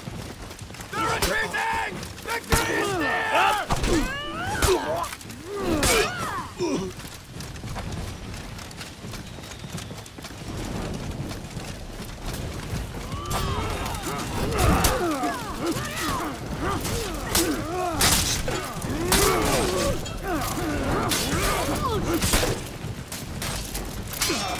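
Swords clash and ring sharply, again and again.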